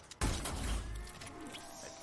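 An electric weapon crackles and zaps.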